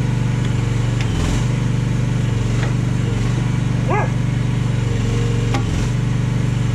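Metal clanks from an excavator arm.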